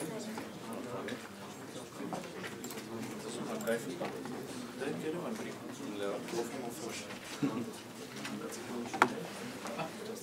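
Footsteps move across the floor.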